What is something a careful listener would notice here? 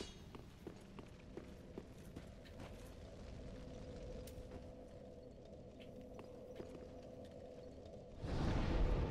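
Armored footsteps clink on stone.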